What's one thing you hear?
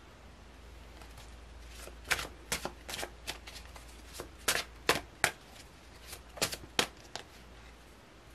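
Playing cards riffle and flick as a deck is shuffled by hand.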